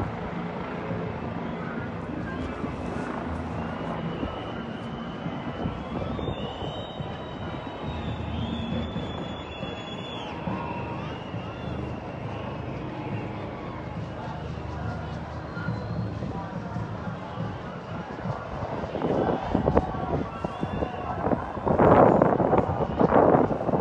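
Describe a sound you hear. A large crowd chants and shouts far below, outdoors.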